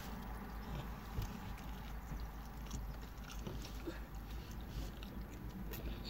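A woman bites and chews crispy food close to the microphone.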